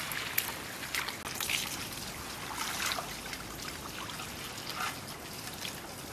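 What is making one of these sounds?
Hands swish and rustle through wet leafy greens in water.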